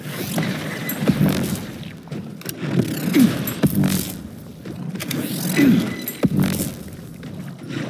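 An electric weapon crackles and zaps in short bursts.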